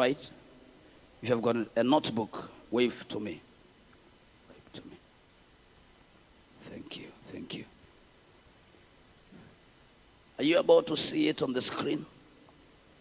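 A young man preaches with animation into a microphone, in bursts with pauses.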